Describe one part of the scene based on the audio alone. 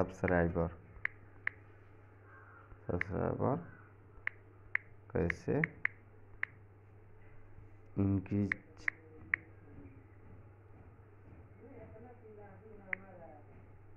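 Soft taps click on a phone's touch keyboard.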